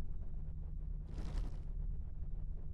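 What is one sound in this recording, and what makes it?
A game menu makes a short whooshing sound as the selection moves.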